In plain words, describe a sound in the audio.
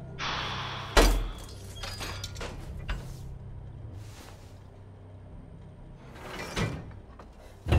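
Metal scrapes and clatters as a lock is pried open.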